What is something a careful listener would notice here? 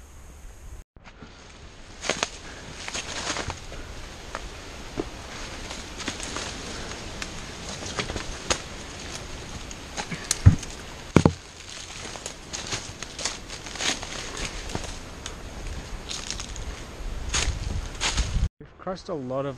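Footsteps crunch and branches brush through dry scrub.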